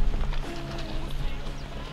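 A wild boar splashes through shallow muddy water.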